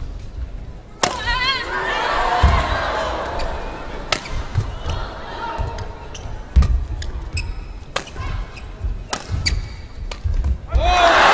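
Shoes squeak on the court floor.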